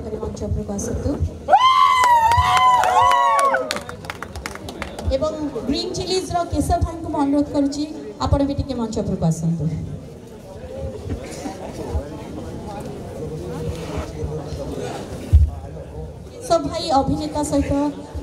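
A woman speaks with animation into a microphone over loudspeakers in a large hall.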